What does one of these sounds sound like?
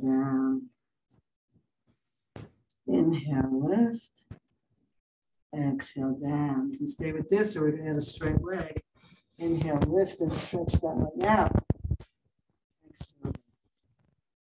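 A woman calmly talks through instructions close to a microphone, with pauses.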